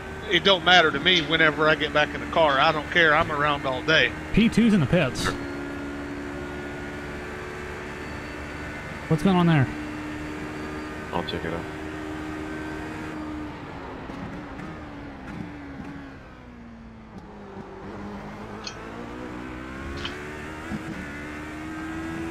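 A race car engine drones steadily, rising and falling in pitch as it shifts gears.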